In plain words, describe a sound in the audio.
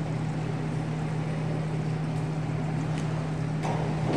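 A diving board thumps and rattles under a diver's steps in a large echoing hall.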